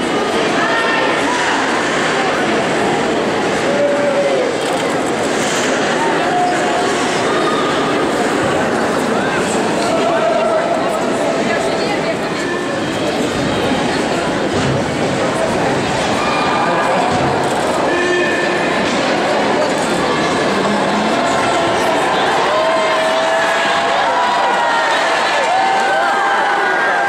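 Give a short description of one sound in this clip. A crowd roars and chatters steadily in a large echoing arena.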